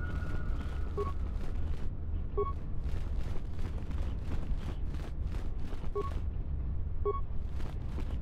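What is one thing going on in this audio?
Short electronic beeps sound a few times.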